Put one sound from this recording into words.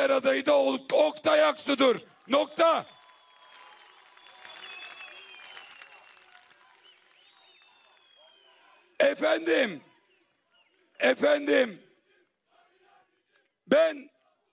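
A man speaks loudly and forcefully into a microphone, heard through loudspeakers outdoors.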